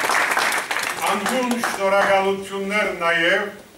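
An older man sings out in a strong voice, heard through a microphone.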